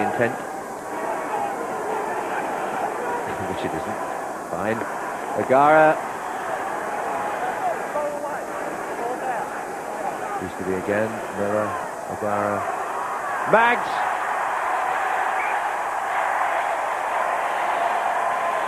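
A large crowd cheers and murmurs steadily in a big open stadium.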